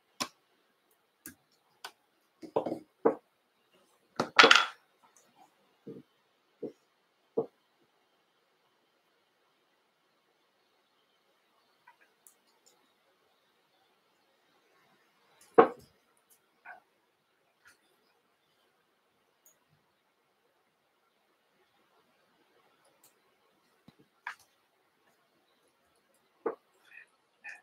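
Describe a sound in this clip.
Small tools click and tap close by.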